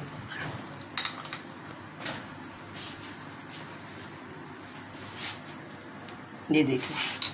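A spoon scrapes and clinks against a glass bowl.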